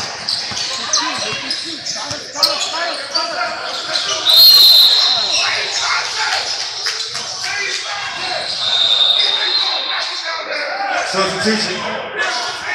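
Young players chatter and call out in a large echoing gym.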